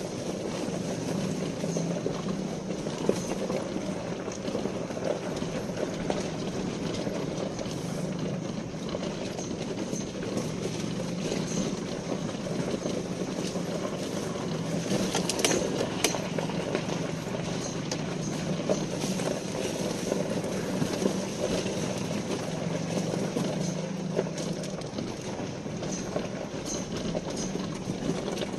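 Tyres crunch over loose gravel.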